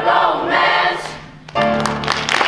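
A youth choir sings together in a large hall.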